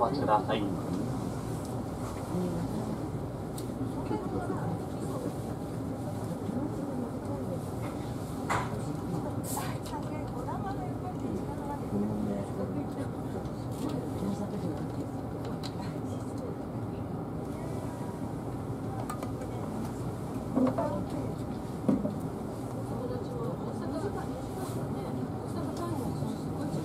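A train's engine hums steadily at idle, heard from inside a carriage.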